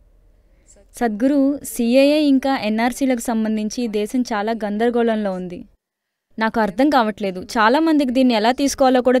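A young woman speaks into a microphone with animation.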